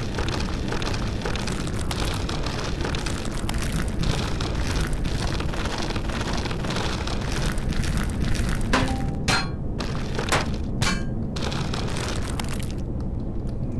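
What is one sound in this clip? A mining tool grinds through rock with a harsh, steady roar.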